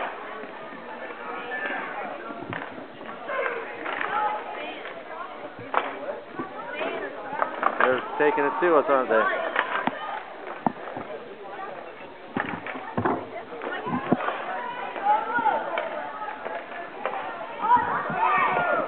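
Hockey sticks clack sharply against a ball and the floor.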